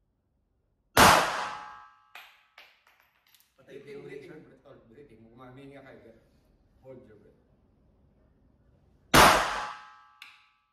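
A pistol fires a loud shot that echoes briefly in an enclosed room.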